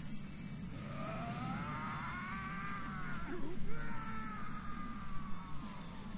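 A young man exclaims excitedly close to a microphone.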